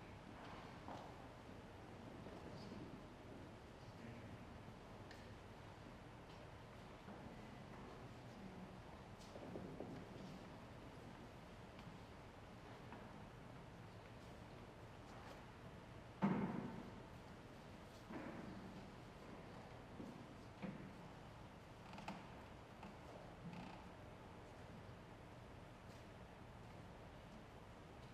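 People murmur quietly in a large echoing hall.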